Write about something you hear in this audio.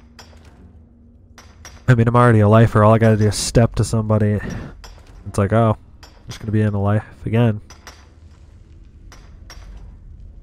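A pickaxe strikes rock in sharp, repeated knocks.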